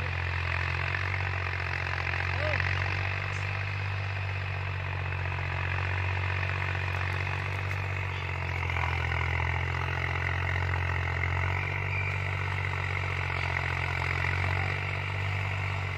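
A rotary tiller churns and rattles through soil.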